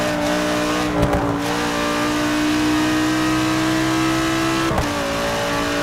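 A racing car engine briefly drops in pitch as gears shift.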